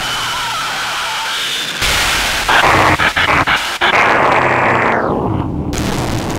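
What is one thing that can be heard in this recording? A man vocalizes into a microphone over loudspeakers.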